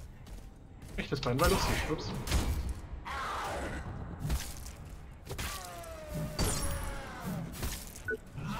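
A weapon swings and strikes with heavy hits.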